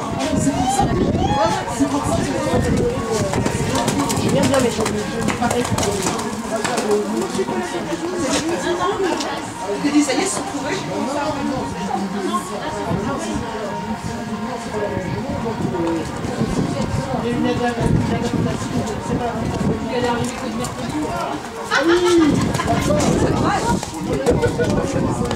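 A horse's hooves thud and splash on wet, muddy ground.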